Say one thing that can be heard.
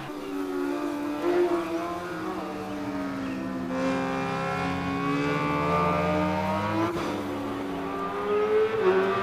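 Racing motorcycle engines scream at high revs, rising and falling as the riders shift gears.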